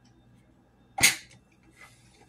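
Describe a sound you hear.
A plastic bottle cap snaps once.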